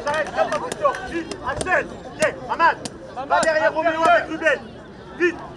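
A man shouts instructions loudly from the sideline.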